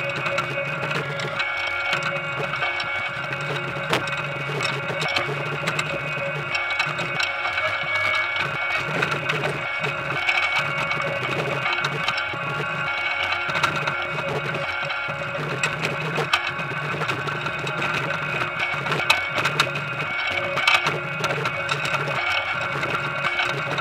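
A harvesting machine drones steadily nearby.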